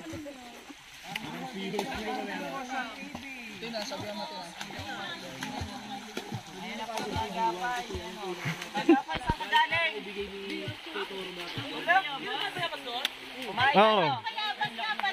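A group of young men and women chatter and laugh nearby.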